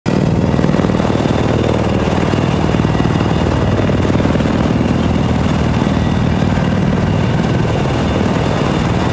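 A helicopter's rotor thumps rapidly and steadily as the engine drones.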